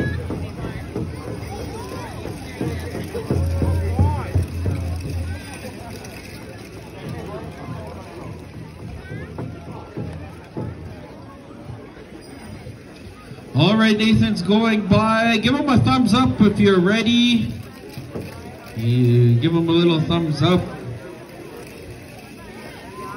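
A crowd of people chatters outdoors.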